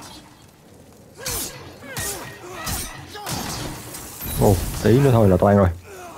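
Sword blows strike and clash in a fight.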